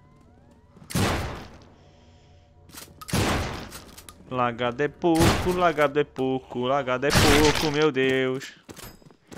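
A shotgun fires loud, sharp blasts.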